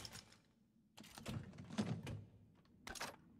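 The lid of a case creaks open.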